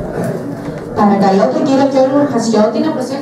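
A young woman reads out clearly through a microphone and loudspeaker.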